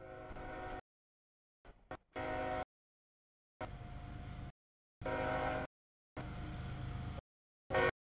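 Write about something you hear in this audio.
A train horn blows loudly in repeated long and short blasts nearby.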